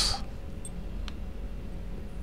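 A game menu clicks once as a setting changes.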